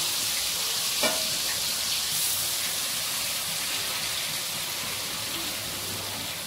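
A spatula scrapes against a pan.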